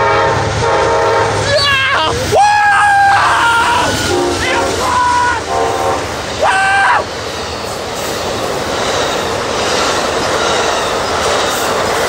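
A train rumbles and clatters loudly past on the tracks close by.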